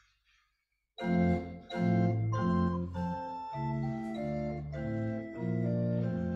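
An organ plays steady chords.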